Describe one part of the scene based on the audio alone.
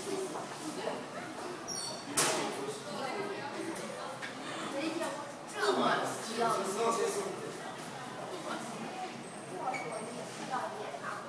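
Voices of people talk in the distance outdoors.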